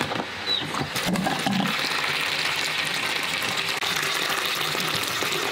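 Water pours steadily from a tap into a basin of dry beans.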